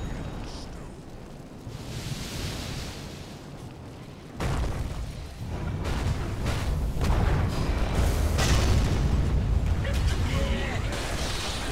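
Fire spells roar and crackle in a fantasy battle.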